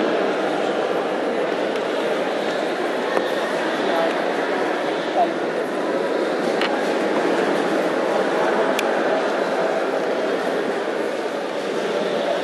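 A crowd murmurs and chatters steadily in a large echoing hall.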